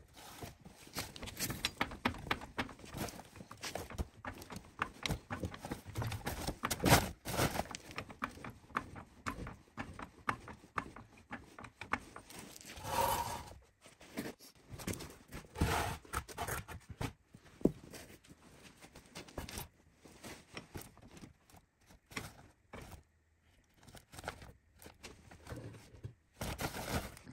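A hydraulic floor jack clicks and creaks as its handle is pumped.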